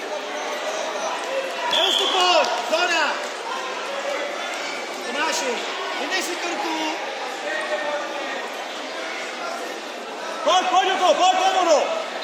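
Spectators shout encouragement in an echoing sports hall.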